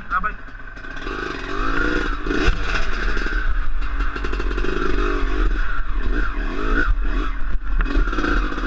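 A motorbike engine revs hard and roars.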